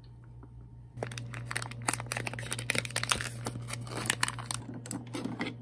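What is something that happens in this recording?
A foil wrapper rustles and crackles.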